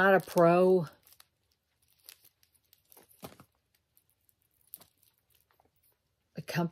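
Small metal pieces click faintly in a woman's hands.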